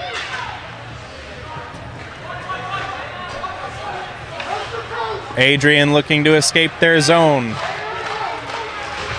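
A crowd of spectators talks in a large echoing rink.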